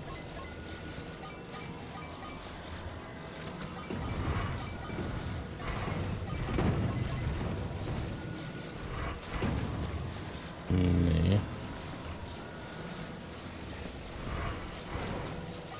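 A low magical hum drones steadily.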